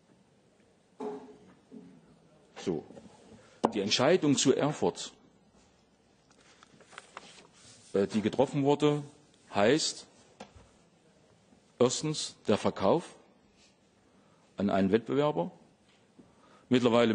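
A middle-aged man speaks calmly into a microphone, pausing often.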